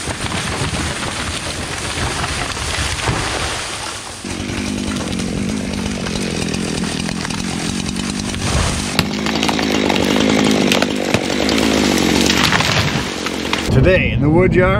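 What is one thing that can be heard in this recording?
A chainsaw roars steadily close by.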